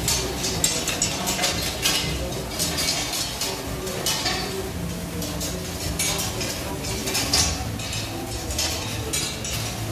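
Metal spatulas scrape and clatter on a hot griddle.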